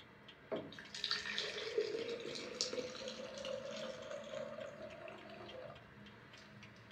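Milk pours into a pot with a soft splash.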